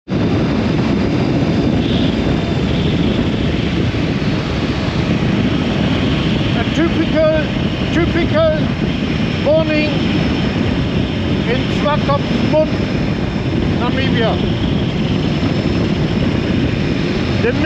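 Wind roars loudly and steadily past a moving motorcycle.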